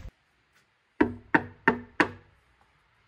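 A hand knocks on a wooden door.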